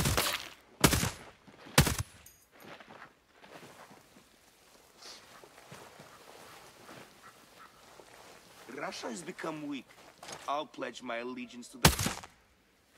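A rifle fires several sharp, loud shots.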